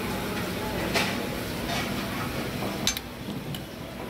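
A metal ladle clinks against a pot.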